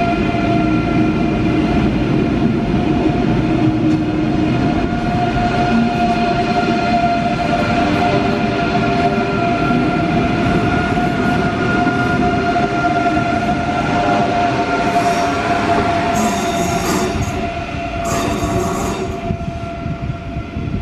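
A high-speed train rumbles past close by with a steady whine, then fades away.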